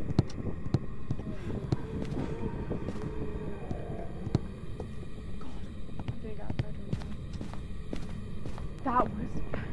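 Footsteps thud on a wooden floor as a man runs.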